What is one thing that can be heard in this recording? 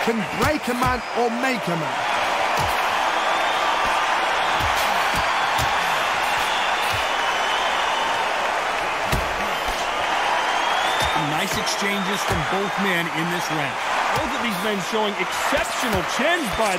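Boxing gloves thud against a body with punches.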